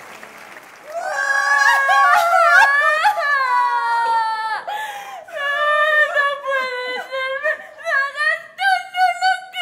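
A woman sings loudly on a stage, heard from the audience.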